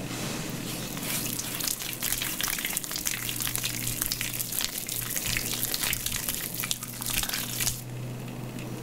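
Hands squish and rub lather through wet hair close up.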